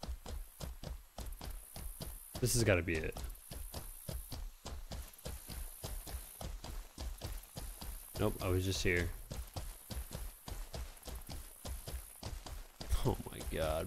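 Hooves gallop quickly and steadily.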